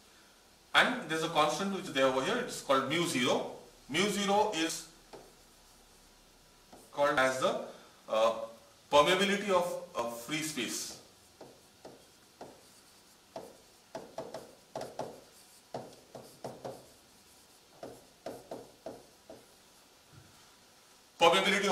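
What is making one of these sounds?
A man lectures calmly into a microphone, pausing between phrases.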